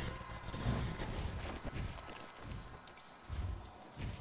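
Large wings beat with heavy whooshes.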